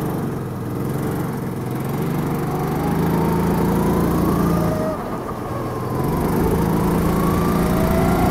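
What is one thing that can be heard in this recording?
A kart engine buzzes loudly up close, revving up and easing off through the corners.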